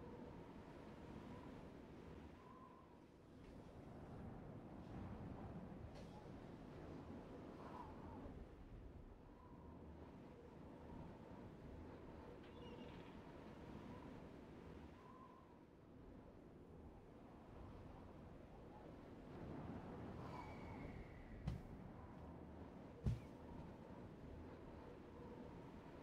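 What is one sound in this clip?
Fire roars steadily in a strong rushing wind.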